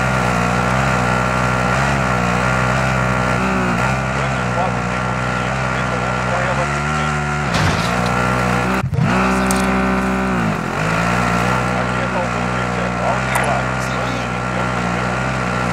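A quad bike engine drones loudly, revving up and down.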